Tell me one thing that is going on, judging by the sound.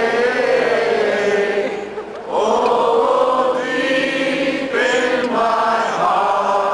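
A band plays amplified music.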